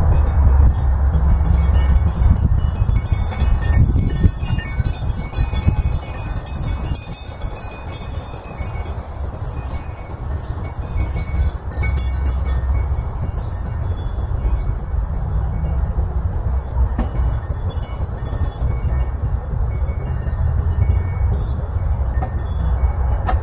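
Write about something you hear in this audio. Wind gusts outdoors, buffeting with a low rumble.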